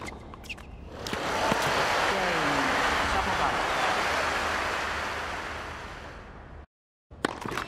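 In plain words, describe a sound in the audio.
A crowd applauds and cheers loudly, then fades.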